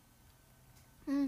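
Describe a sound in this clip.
A young woman speaks close to a phone microphone.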